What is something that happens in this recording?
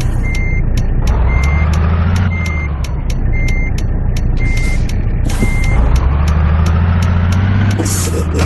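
A truck engine revs up and its pitch rises, then drops.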